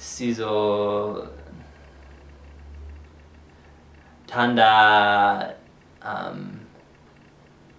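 A young man speaks calmly close by, in short phrases with pauses.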